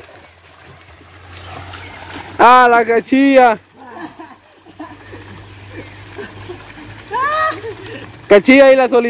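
Water splashes as swimmers move through a pool.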